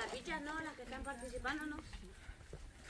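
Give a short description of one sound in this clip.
A woman talks with animation nearby, outdoors.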